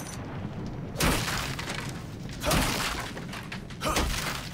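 A wooden crate smashes and splinters.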